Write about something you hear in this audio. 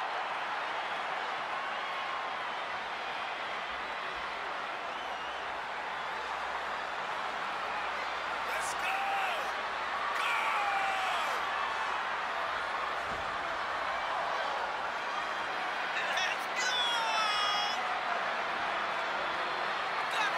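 A large crowd cheers steadily in a big echoing arena.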